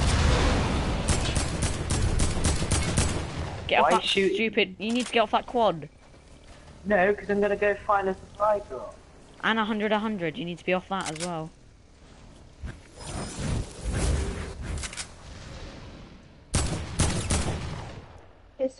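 Rapid gunshots crack from a video game.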